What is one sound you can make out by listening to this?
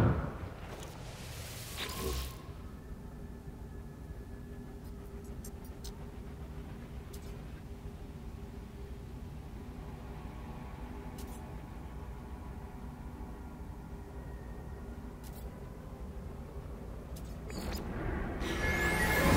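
A portal hums with a low steady drone.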